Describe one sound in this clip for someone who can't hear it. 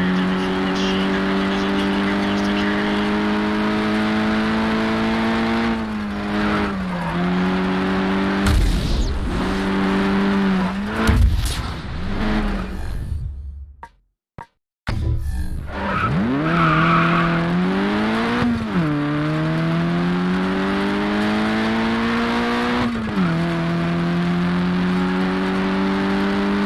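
A car engine revs loudly, rising and dropping in pitch as the gears shift.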